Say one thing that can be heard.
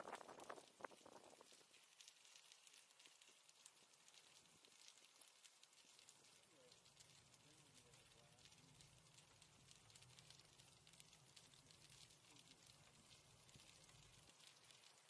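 Wind rushes past a moving bicycle.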